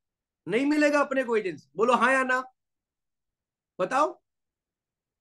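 A man speaks with animation into a close microphone, heard over an online call.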